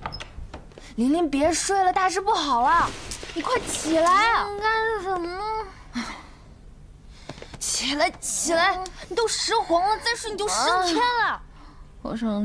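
A young woman shouts urgently at close range.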